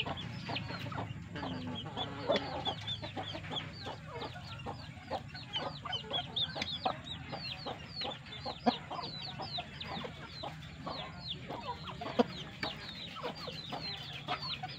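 Chicks cheep with high, rapid peeps.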